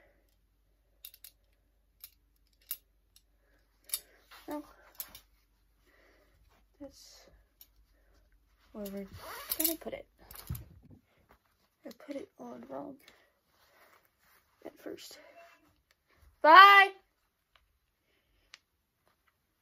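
A metal belt buckle clinks and clicks.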